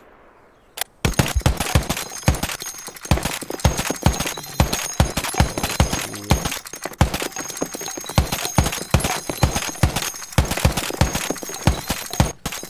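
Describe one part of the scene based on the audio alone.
A heavy machine gun fires in rapid bursts close by.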